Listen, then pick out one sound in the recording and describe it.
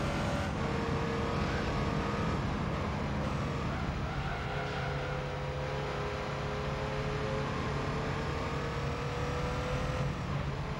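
A racing car engine whines at high revs, rising and falling as it changes gear.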